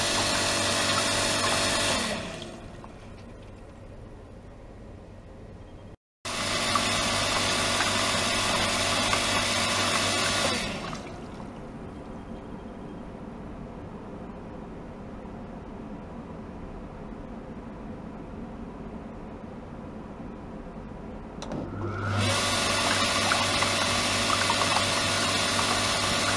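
Water gushes and splashes into a tub.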